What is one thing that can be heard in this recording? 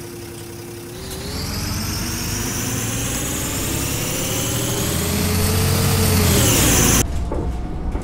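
A bus engine whines higher and higher as it speeds up.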